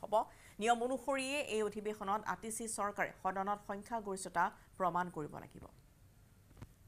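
A woman speaks steadily into a microphone.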